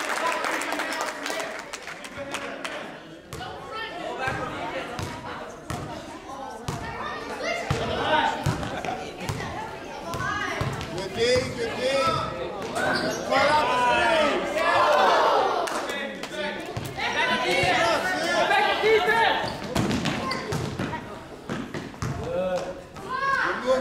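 Children and adults shout and cheer in an echoing hall.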